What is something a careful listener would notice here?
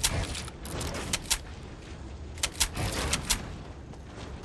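Gunshots crack in short, sharp bursts.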